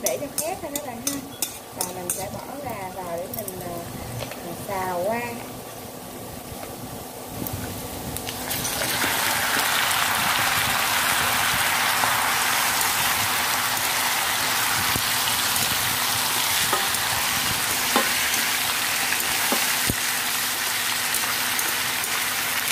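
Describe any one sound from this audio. A metal utensil clicks and scrapes against a pan.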